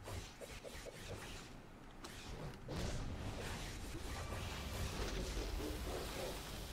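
Game combat effects crash and blast.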